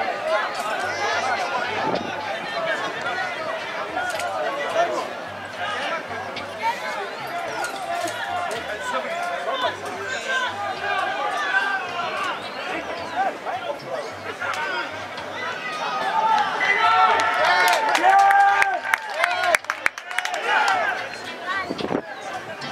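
Players shout and call out to each other across an open field.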